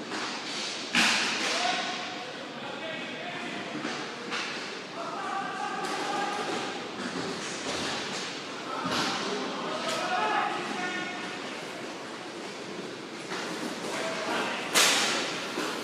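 Sticks clack against a ball and the boards.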